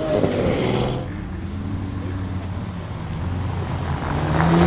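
A second sports car engine rumbles at low speed close by, growing louder as it approaches.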